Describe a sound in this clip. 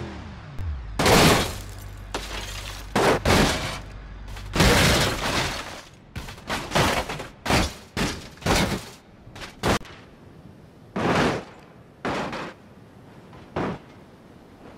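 A vehicle tumbles down a slope, crashing and banging hard against rock and ground.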